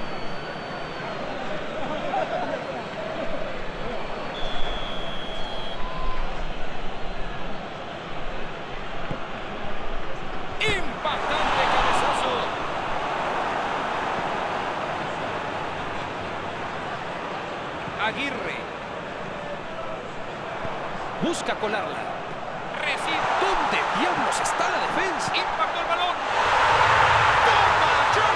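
A large crowd roars steadily in a stadium, swelling at times.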